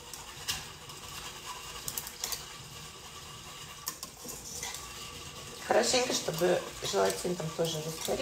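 A spoon clinks against a pot.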